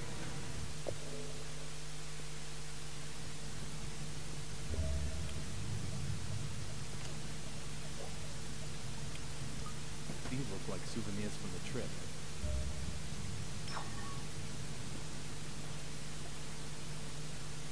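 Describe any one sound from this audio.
A low cabin engine drone hums steadily.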